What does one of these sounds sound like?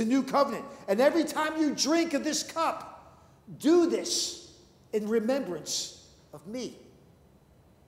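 A middle-aged man speaks with animation into a microphone in an echoing room.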